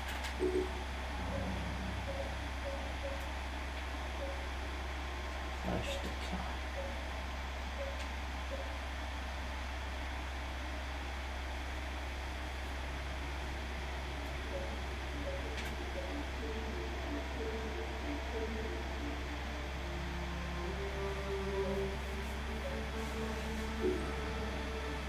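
Soft electronic menu blips sound at a steady pace.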